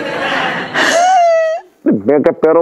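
A man cries out and wails close by.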